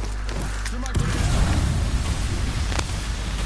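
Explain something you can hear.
A loud explosion bursts and roars close by.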